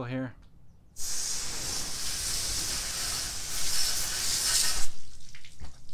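A pressure washer sprays water with a loud steady hiss.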